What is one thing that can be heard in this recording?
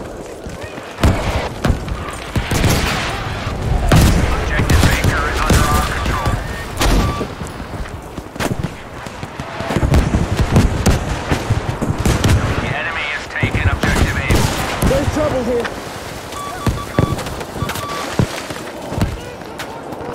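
Gunfire cracks in sharp bursts.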